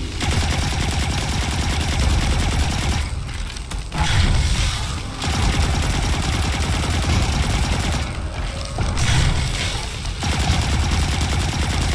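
Rapid gunfire rattles steadily, pausing briefly twice.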